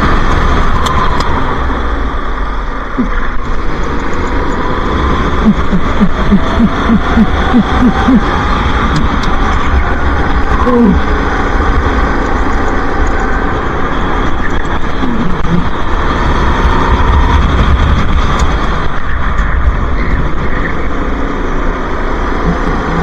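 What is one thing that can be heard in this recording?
Kart engines drone loudly and steadily close by.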